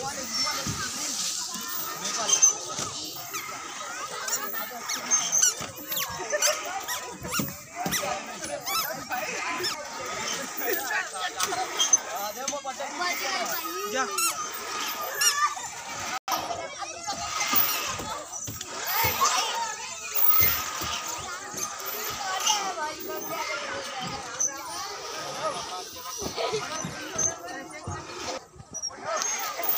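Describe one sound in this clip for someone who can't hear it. Children shout and chatter playfully nearby outdoors.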